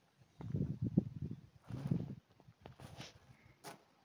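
Footsteps scuff on stone paving.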